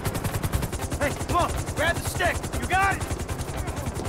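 A man speaks tensely.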